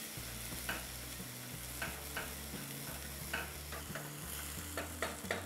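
A spatula scrapes and stirs inside a pot.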